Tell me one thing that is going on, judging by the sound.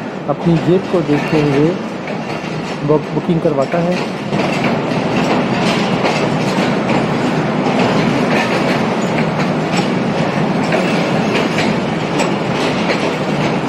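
A passenger train rolls past close by, its wheels rumbling and clattering on the rails.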